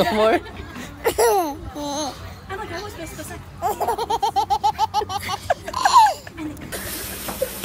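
A baby giggles and squeals up close.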